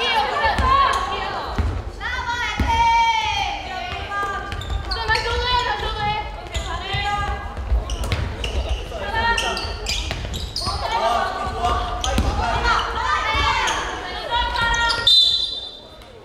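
Young women shout to each other across an echoing indoor court.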